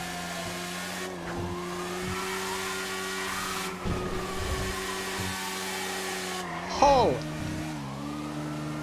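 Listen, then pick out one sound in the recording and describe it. A motorcycle engine changes pitch as it shifts gears.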